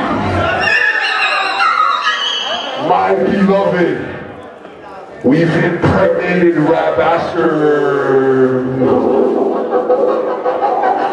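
A young woman sings loudly and with feeling.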